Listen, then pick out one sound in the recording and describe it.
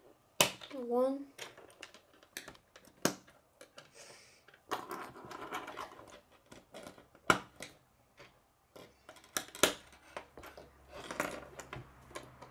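Plastic pieces tap and knock on a wooden table.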